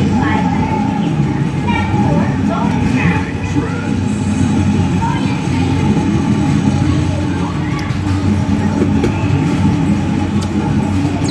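A racing car engine roars at high speed from an arcade game's loudspeakers.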